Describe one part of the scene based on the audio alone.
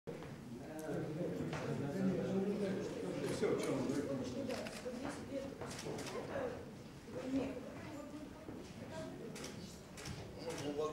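Several men chat in low voices.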